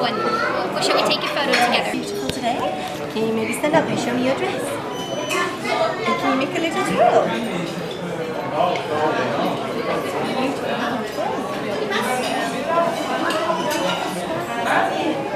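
Many people chatter in a busy, echoing room.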